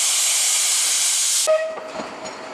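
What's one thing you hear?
Steam hisses loudly from a steam locomotive.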